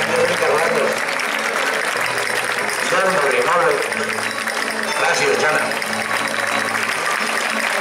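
A crowd of onlookers murmurs and chatters outdoors.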